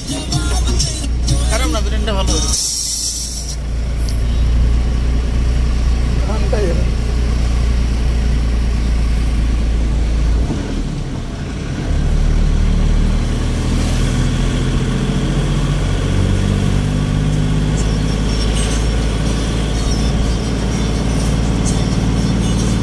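A vehicle engine hums steadily from inside.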